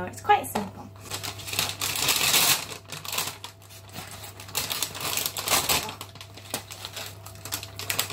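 Paper rustles and crinkles as it is unwrapped.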